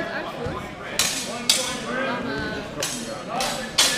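Steel longswords clash and ring in a large echoing hall.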